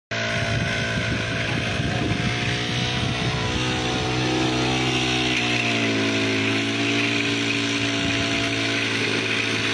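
A small engine drones steadily.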